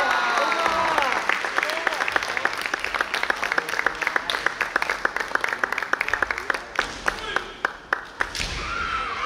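An audience claps in quick rhythm.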